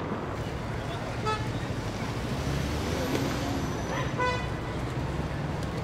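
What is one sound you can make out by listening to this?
A car drives past close by.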